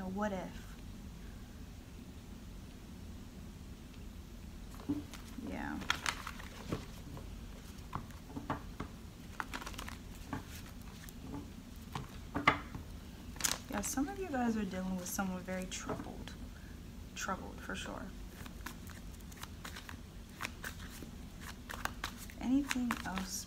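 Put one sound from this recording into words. A young woman speaks quietly and haltingly close to the microphone.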